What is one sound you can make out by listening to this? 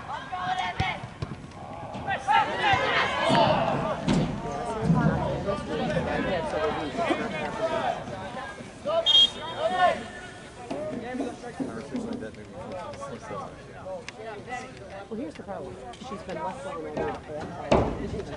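Many voices of young people shout and chatter across an open field.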